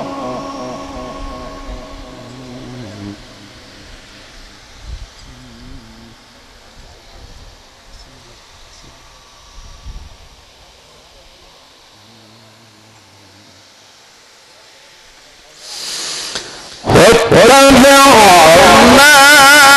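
A man chants loudly into a microphone with a long, wavering melody.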